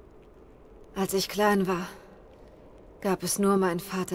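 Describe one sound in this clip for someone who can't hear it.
A young woman speaks softly and with emotion, close by.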